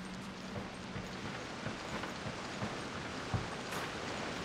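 Footsteps thud on a wooden plank bridge.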